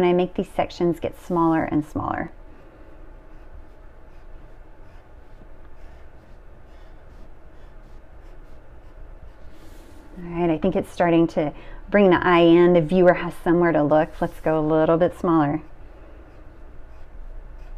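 A pencil scratches and rasps across paper.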